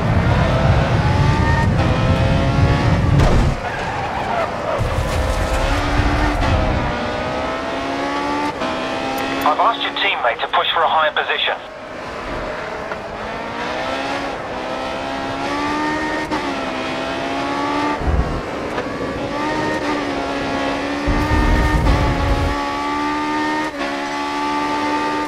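A racing car engine roars, rising in pitch and dropping sharply with each gear change.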